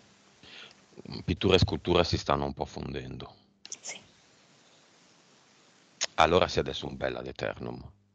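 A man speaks calmly through a headset microphone over an online call.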